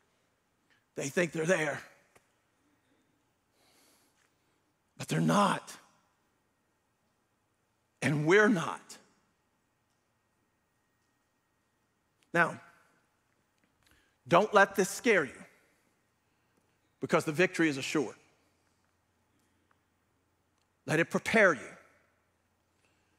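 A middle-aged man preaches with emphasis through a microphone in a large echoing hall, in short bursts with pauses.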